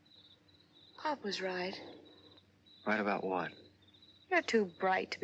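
A young woman speaks softly, close by.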